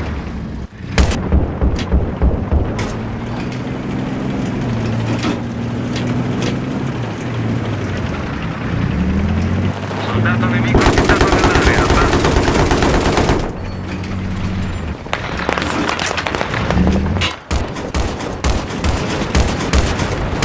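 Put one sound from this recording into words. Sharp gunshots and blasts crack nearby.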